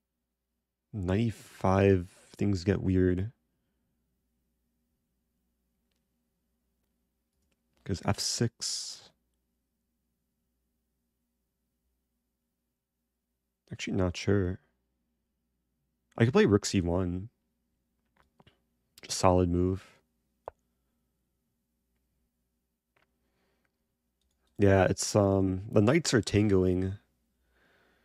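A young man talks in short bursts into a close microphone, with pauses between.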